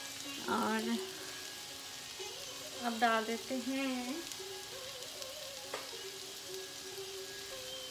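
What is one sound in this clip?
Food sizzles gently in a frying pan.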